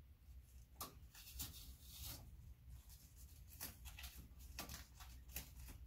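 A small knob clicks and rattles as a hand turns it.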